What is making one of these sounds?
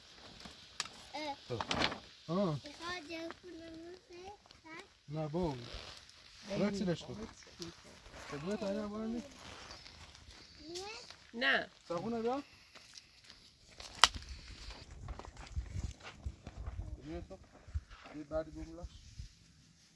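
A young child talks and calls out nearby.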